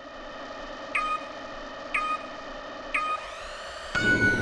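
A countdown timer beeps three times, evenly spaced.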